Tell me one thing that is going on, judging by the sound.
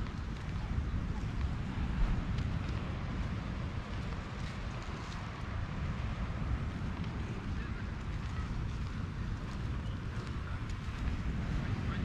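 Wind blows steadily outdoors, rumbling close by.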